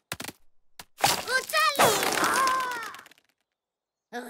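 A cartoon character cheers loudly and happily.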